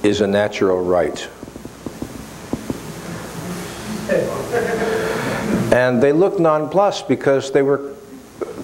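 An elderly man speaks calmly and thoughtfully into a microphone.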